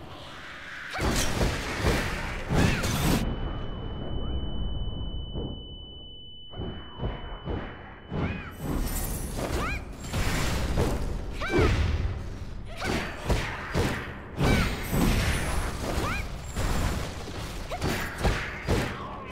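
Weapons clash and magic blasts burst in a fast fight.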